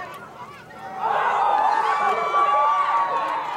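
A crowd of spectators cheers loudly.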